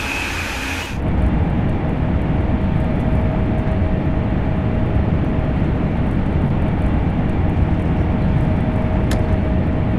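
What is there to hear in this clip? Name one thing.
A high-speed electric train rumbles at speed, heard from inside the cab.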